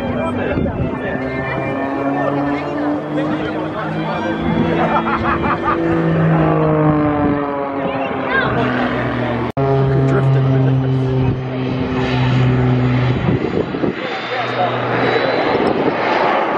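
A piston-engine Pitts aerobatic biplane drones overhead, its engine rising and falling in pitch as it manoeuvres.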